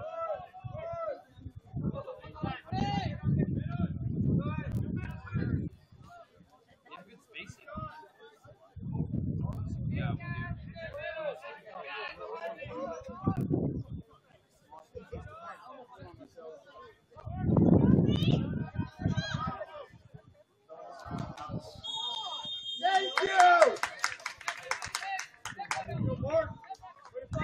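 Young players shout and call to each other across an open outdoor field.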